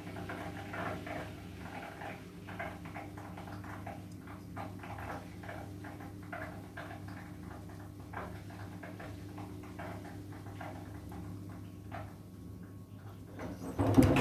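Wet laundry tumbles and slaps softly inside a washing machine drum.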